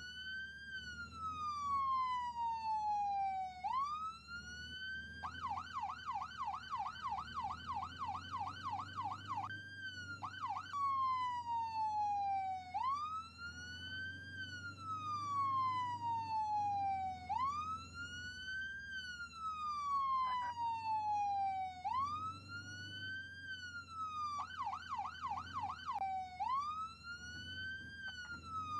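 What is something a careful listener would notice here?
A siren wails up and down steadily, switching at times to a fast yelp.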